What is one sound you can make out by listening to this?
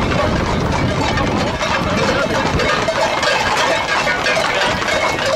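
Horses' hooves clatter on a dirt road.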